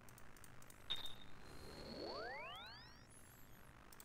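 A magical teleport sound effect swoops quickly upward in pitch.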